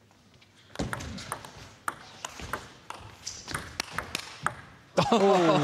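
A table tennis ball clicks back and forth off paddles and the table in a fast rally.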